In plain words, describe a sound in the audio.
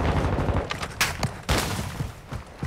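A rifle clatters as it is handled and switched.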